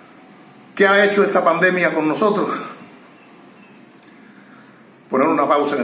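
An elderly man speaks calmly and close by, pausing between phrases.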